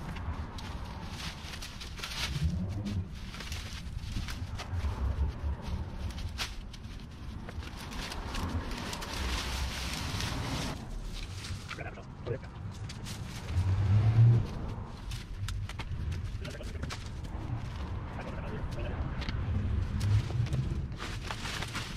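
Leafy branches rustle and snap as they are pulled loose.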